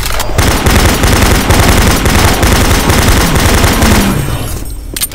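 A rapid automatic gun fires in loud bursts.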